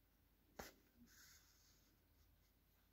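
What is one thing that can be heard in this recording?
Yarn rustles softly as it is pulled through knitted fabric.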